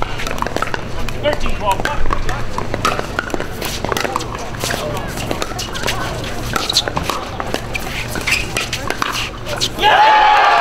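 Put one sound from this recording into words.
Paddles strike a plastic ball with sharp pops in a quick rally.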